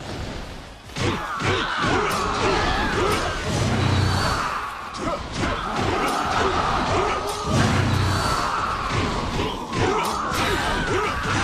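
Blades slash and clang rapidly in a chaotic battle.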